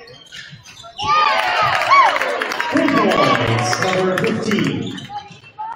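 A crowd in a large echoing gym cheers loudly.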